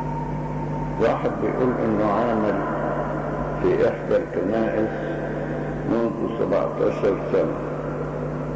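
An elderly man speaks slowly into a microphone, heard through a loudspeaker in a large hall.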